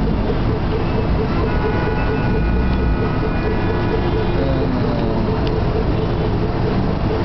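Traffic rumbles steadily on a busy road.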